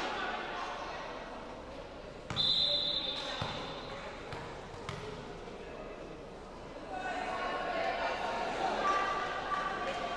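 Players' voices call out across a large echoing hall.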